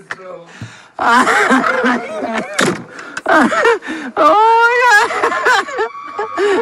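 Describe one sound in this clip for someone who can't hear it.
A boy laughs loudly close by.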